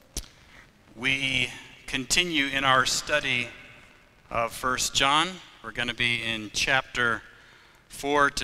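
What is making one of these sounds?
A man speaks calmly and clearly into a microphone.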